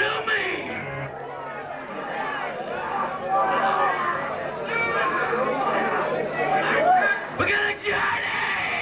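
A guitar plays distorted chords through loud amplifiers.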